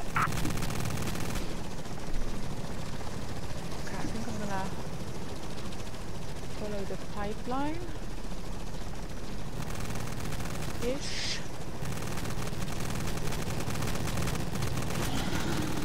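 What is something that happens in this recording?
A helicopter's rotors thud and drone in the distance.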